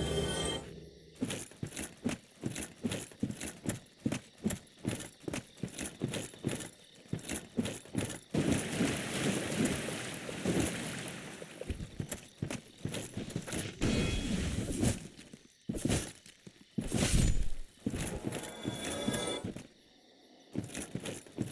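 Armoured footsteps thud steadily on the ground.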